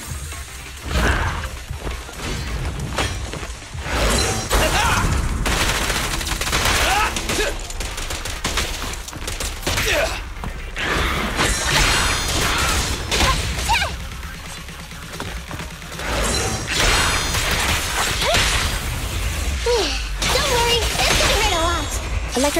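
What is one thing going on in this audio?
Sword slashes and energy blasts whoosh and crash in a fast fight.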